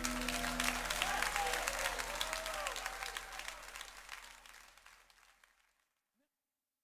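A drum kit is played with fast, hard hits, then fades away.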